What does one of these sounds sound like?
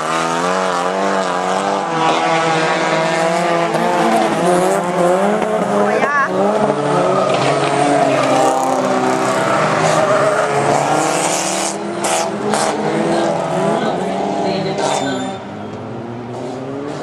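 Rally car engines roar and rev loudly nearby.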